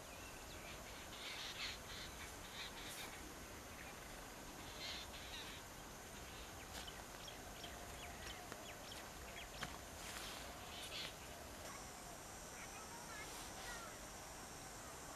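Small birds chirp and call outdoors.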